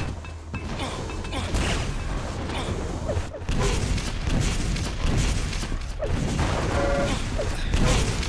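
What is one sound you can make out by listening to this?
An electric beam weapon crackles and hums as it fires.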